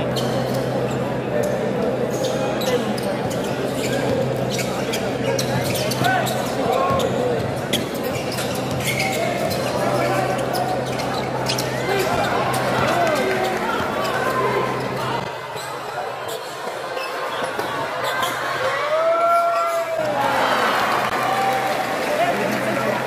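A large crowd murmurs and cheers in an echoing indoor arena.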